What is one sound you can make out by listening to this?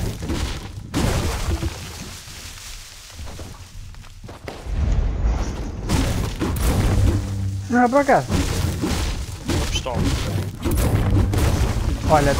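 A heavy hammer thumps against a tree trunk, over and over.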